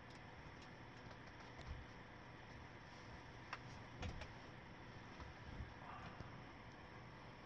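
A wall clock ticks steadily.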